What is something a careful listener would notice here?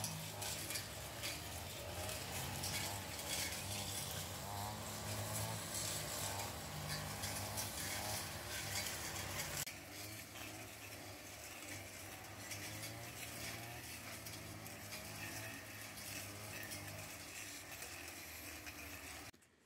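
A brush cutter engine drones steadily nearby.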